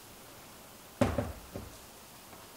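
A plastic jug knocks down onto a hard table.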